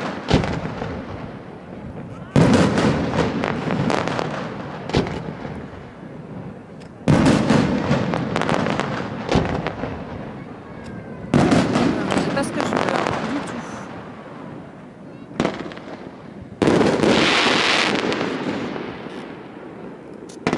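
Fireworks burst with loud booms that echo and rumble away.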